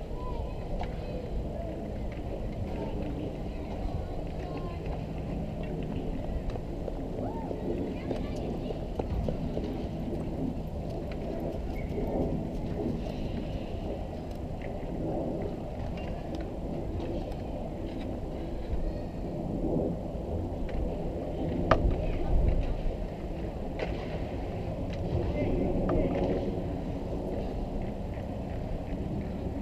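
Hockey skates scrape and carve across the ice.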